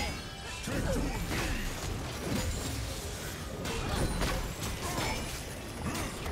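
Magic spells whoosh and crackle during a fantasy battle.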